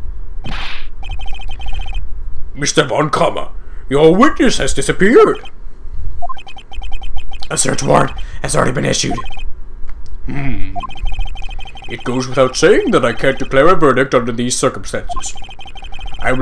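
Short electronic beeps tick rapidly in bursts.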